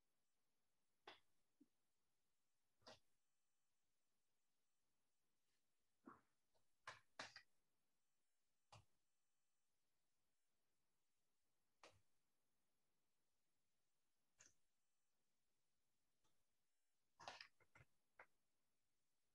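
A brush brushes lightly across paper in short, scratchy strokes.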